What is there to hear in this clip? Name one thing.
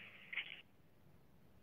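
A two-way radio gives a short beep.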